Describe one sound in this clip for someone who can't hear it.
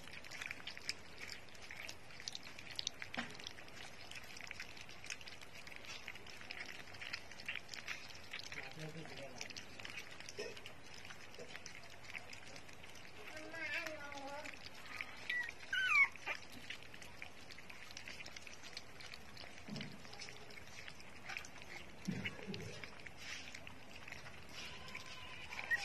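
Puppies lap and slurp liquid from a bowl with quick wet clicks.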